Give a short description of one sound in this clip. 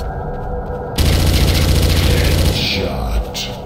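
An automatic rifle fires a rapid burst of gunshots.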